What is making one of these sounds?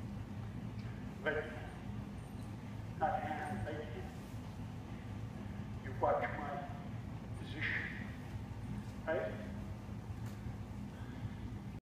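Horses walk on soft sand footing in a large indoor arena.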